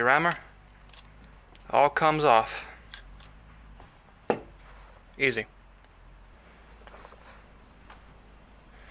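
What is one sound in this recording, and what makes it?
Small metal parts click and clink.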